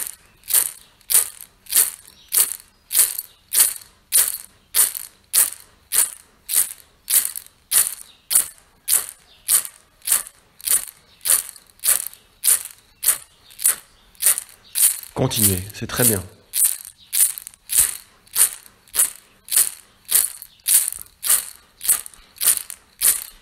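A man breathes out sharply through the nose in a fast, even rhythm.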